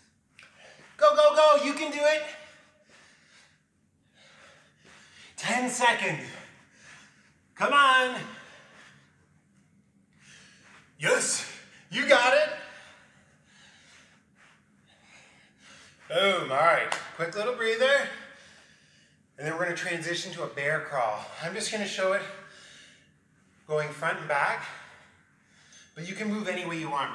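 A man talks to the listener with energy, close to a microphone, in short bursts.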